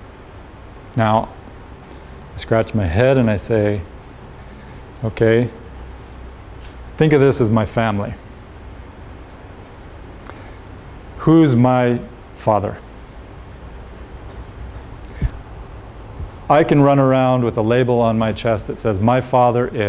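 A man speaks calmly in short bursts with pauses.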